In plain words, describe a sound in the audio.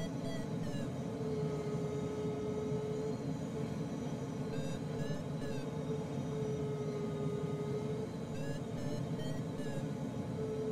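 Air rushes steadily past a glider's canopy.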